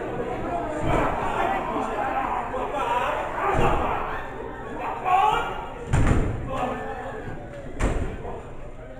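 Wrestlers' bodies slam heavily onto the ring mat.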